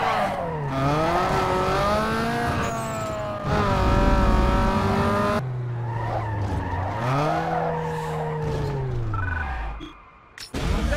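A car engine roars and revs up, dropping in pitch with each gear change.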